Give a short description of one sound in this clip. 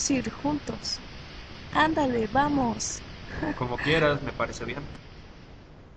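A young man talks calmly up close.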